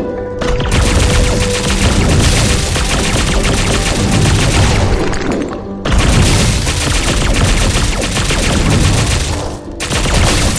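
Game weapons fire in rapid bursts of shots and impacts.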